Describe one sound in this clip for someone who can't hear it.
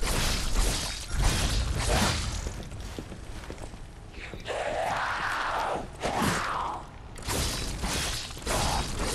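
Swords slash and clang in a fight.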